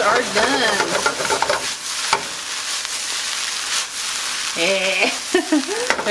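A metal pan scrapes and clanks on a stove grate as it is tossed.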